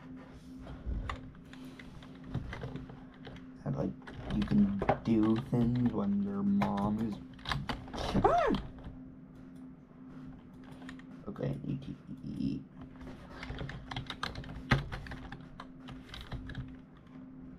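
Keys click as a young man types on a computer keyboard.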